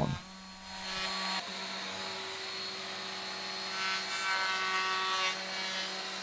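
An electric sander hums steadily against wood.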